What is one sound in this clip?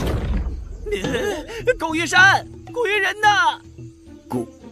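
A young man shouts in an agitated voice.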